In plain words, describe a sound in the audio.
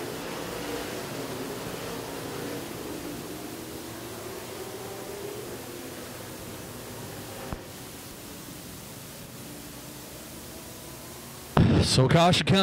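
Race car engines roar around a dirt track.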